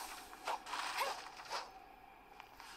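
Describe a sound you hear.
A sword slashes through the air with a whooshing swish.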